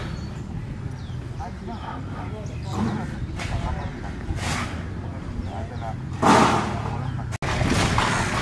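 Men talk quietly at a distance outdoors.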